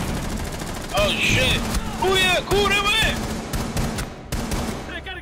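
A gun fires a series of sharp, close shots.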